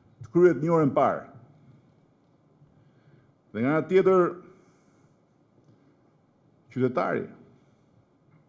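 A middle-aged man speaks forcefully into a microphone in short bursts with pauses.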